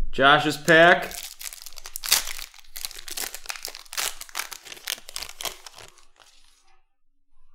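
Foil wrappers crinkle and rustle as packs are torn open.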